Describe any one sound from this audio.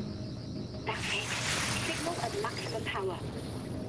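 Electric sparks crackle and fizz sharply.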